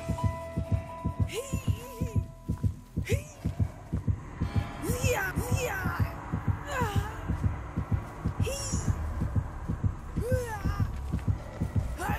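Heavy footsteps thud steadily on the ground.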